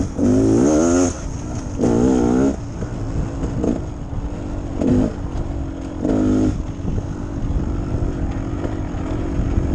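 A motorcycle engine revs up in short bursts and then idles along.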